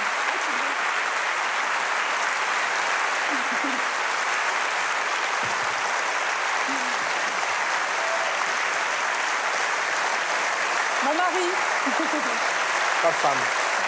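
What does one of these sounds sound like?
A large audience cheers.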